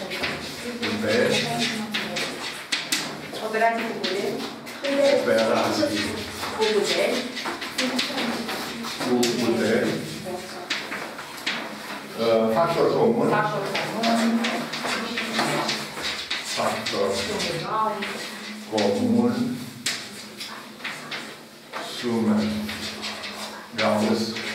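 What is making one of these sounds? Chalk taps and scratches on a blackboard.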